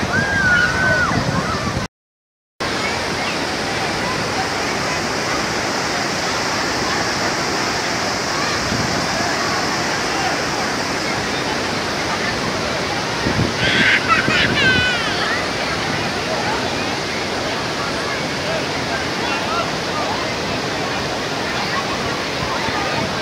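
A large crowd of people chatters and shouts outdoors.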